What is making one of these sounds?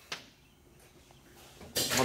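Metal parts clink as a hand handles them.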